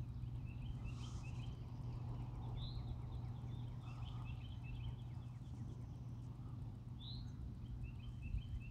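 A man speaks quietly close by.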